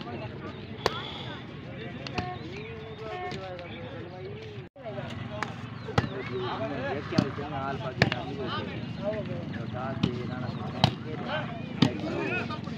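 A ball is struck with sharp smacks.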